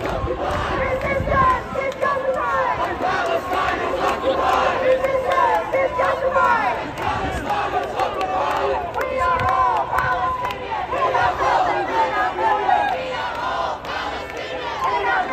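A large crowd of men and women chants and shouts loudly outdoors.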